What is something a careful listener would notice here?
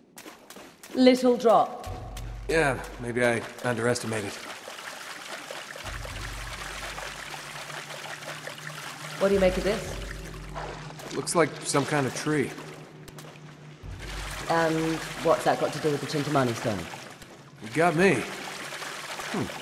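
Water splashes under wading footsteps.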